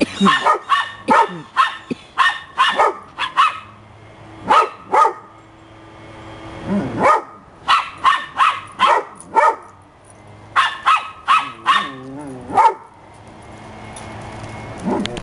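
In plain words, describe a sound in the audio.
Small dogs bark sharply outdoors, over and over.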